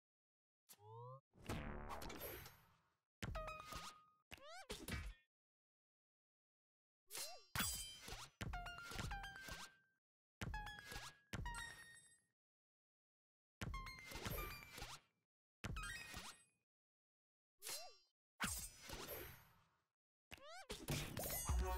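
Short electronic chimes and whooshes play in quick bursts as cards are dealt and played.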